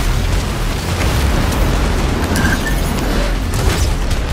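Debris clatters and crackles across the ground.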